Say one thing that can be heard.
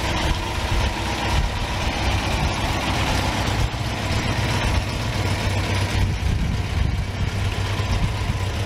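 An MGB sports car's four-cylinder engine runs.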